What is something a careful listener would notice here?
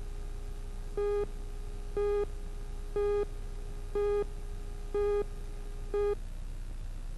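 A short electronic beep sounds once each second as a countdown runs.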